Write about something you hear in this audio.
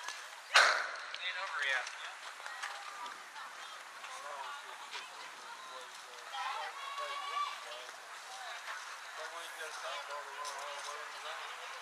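Children shout and cheer outdoors.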